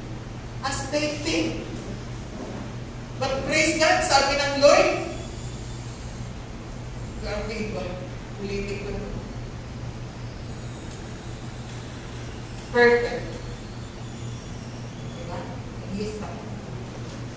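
A woman speaks with animation into a microphone, heard over loudspeakers, with long pauses.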